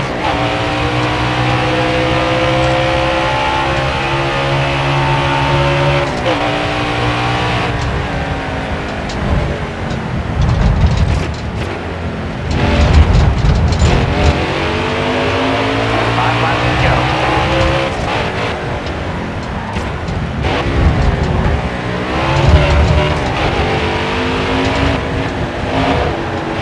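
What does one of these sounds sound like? A race car engine roars loudly, its pitch rising and falling as it shifts gears.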